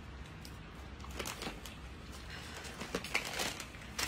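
A plastic package crinkles in hands.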